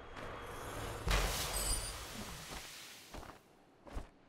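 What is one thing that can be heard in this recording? A magical blast bursts with a loud rushing whoosh.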